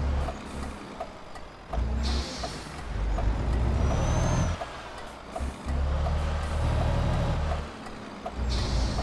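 A truck engine rumbles at low speed, surging and easing.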